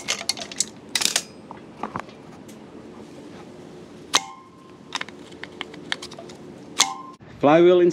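Metal tools clink and rattle against a metal part.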